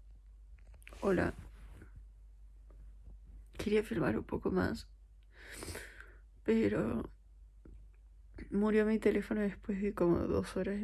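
A young woman speaks softly and sleepily, close by.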